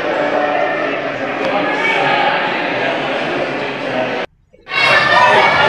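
A crowd of adults chatters and murmurs in an echoing room.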